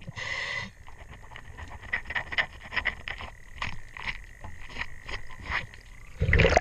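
A metal tool taps and scrapes against a hard surface, muffled underwater.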